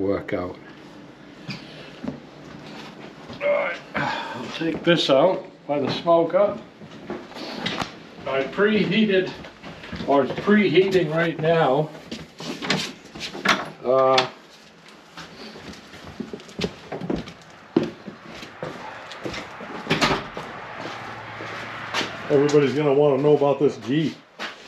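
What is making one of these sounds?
An elderly man talks calmly close by.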